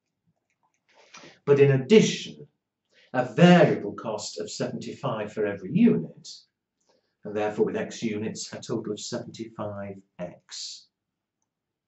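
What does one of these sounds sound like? An elderly man lectures calmly into a close microphone.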